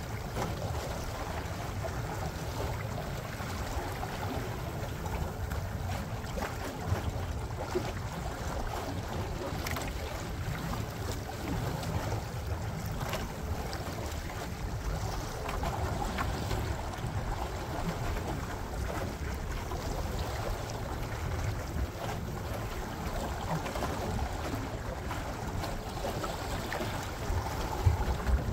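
Small waves lap and splash against a boat's hull.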